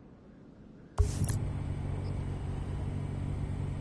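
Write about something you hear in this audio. A car engine rumbles steadily at idle.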